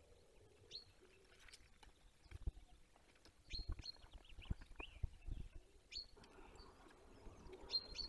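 A large bird shifts on its nest, rustling twigs and bark.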